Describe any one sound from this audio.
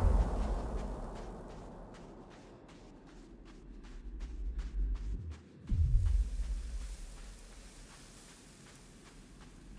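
Light footsteps patter quickly.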